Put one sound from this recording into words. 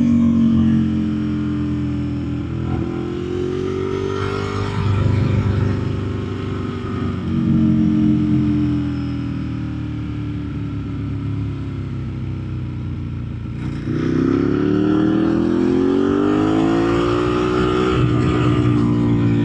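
A motorcycle engine hums steadily and rises and falls in pitch.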